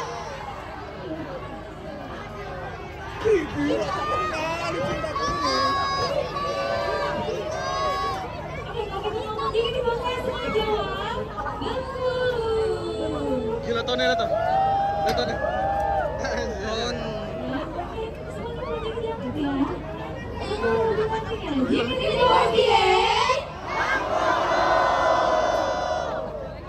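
A crowd cheers and shouts nearby.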